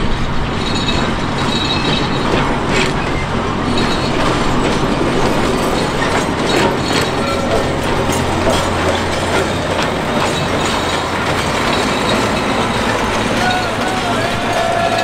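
A diesel locomotive engine hums and rumbles as a train draws near.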